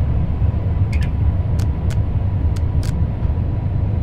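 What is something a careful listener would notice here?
Rails click under the train's wheels.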